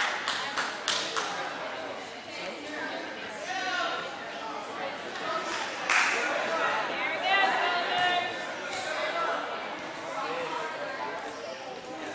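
Young women call out and chatter in a large echoing gym.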